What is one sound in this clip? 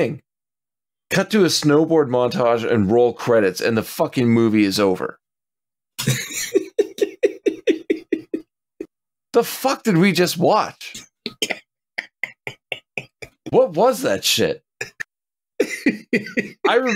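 A man talks into a microphone in short bursts with animation.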